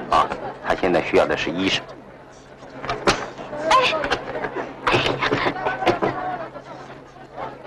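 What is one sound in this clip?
Several people talk at once, close by.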